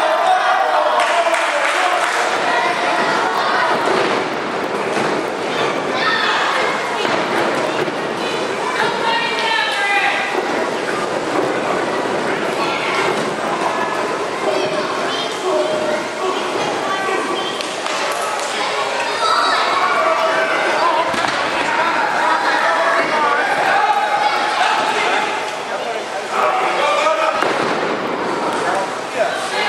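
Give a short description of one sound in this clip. A crowd of children and adults chatters and shouts in an echoing hall.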